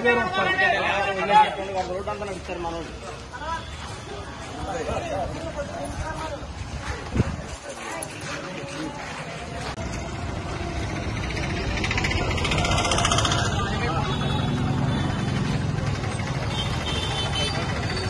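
Footsteps shuffle on a road as a crowd walks.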